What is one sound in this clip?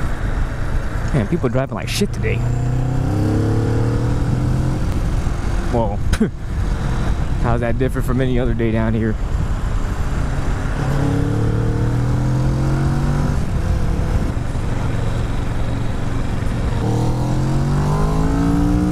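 A motorcycle engine hums and rises and falls in pitch as the rider speeds up and shifts.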